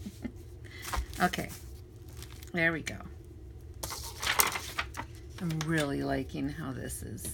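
Paper pages rustle and flap as they are turned by hand.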